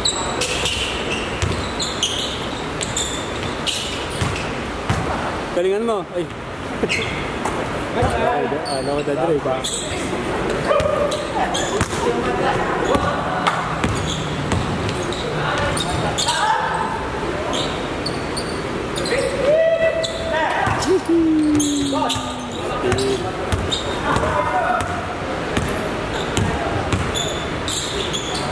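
A basketball bounces on a hardwood court in a large echoing hall.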